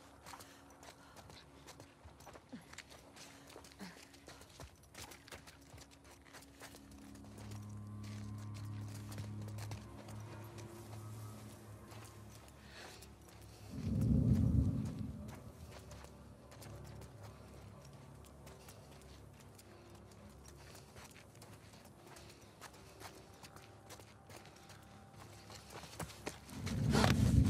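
Soft footsteps shuffle over pavement and grass.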